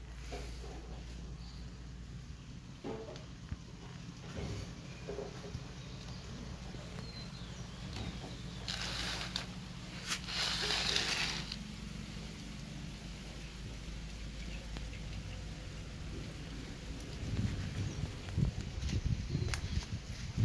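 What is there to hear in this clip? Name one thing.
Young rabbits shuffle and rustle softly in a plastic crate.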